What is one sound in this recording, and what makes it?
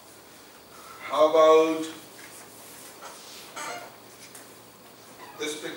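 A man speaks calmly in a lecturing tone.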